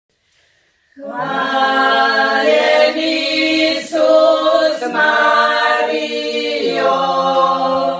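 A group of women sing a hymn together nearby, their voices blending in harmony.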